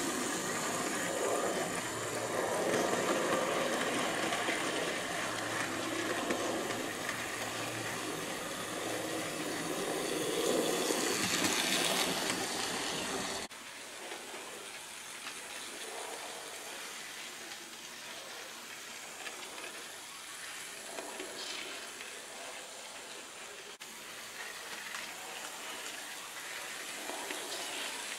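A small model train hums and rattles along its track close by.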